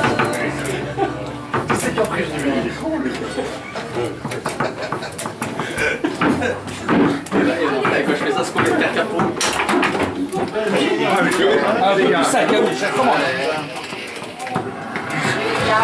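A foosball ball clacks against the players and the table walls.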